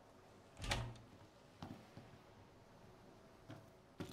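A door clicks open.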